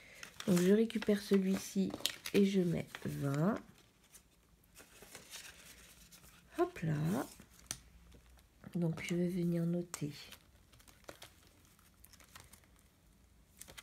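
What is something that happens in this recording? Paper and plastic sleeves rustle as pages are handled.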